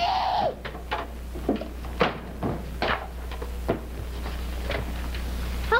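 Bumps and knocks sound as children tussle on the floor.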